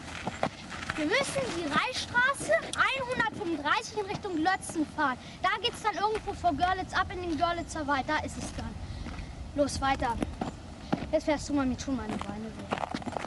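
Young boys talk with each other outdoors.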